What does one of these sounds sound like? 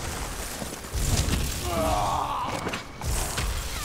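A magic impact thuds against a creature.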